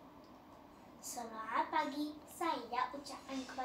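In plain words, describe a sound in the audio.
A young girl speaks clearly and with expression, close by.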